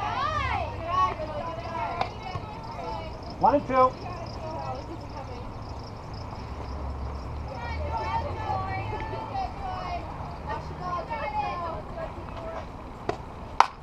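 Young women cheer and chant nearby.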